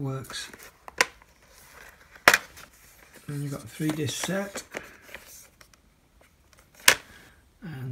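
A plastic case clicks and snaps open.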